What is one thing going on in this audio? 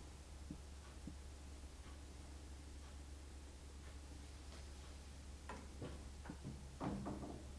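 A piano plays soft, scattered notes close by.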